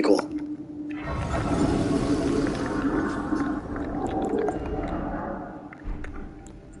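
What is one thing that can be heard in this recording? A shimmering magical chime swells and slowly fades.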